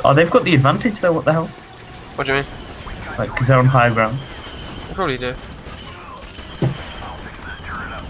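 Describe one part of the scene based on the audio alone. Laser blasters fire in short bursts.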